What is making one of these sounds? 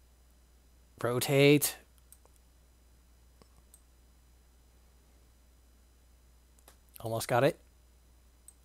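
A man speaks in short bursts close to a headset microphone.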